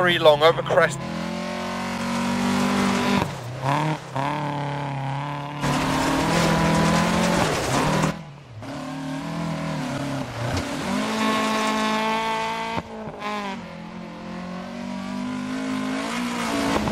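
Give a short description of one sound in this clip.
A rally car engine roars and revs at high speed.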